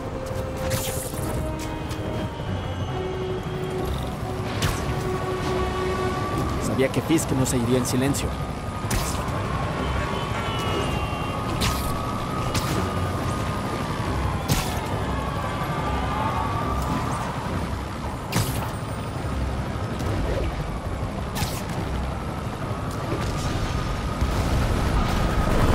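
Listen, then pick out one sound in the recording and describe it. Wind rushes past during fast swinging.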